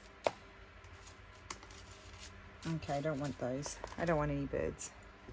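Paper rustles as a hand sorts through cutouts.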